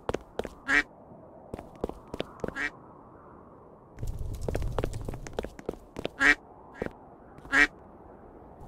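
A short springy jump sound effect plays several times.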